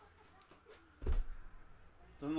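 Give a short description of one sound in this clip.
Boxes thump down onto a table.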